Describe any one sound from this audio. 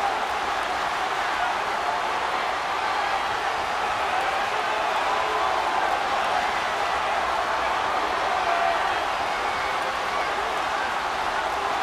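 A large crowd cheers loudly in a big arena.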